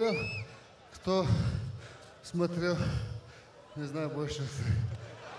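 A young man answers calmly into a microphone.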